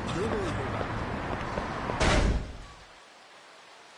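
City traffic hums in the background.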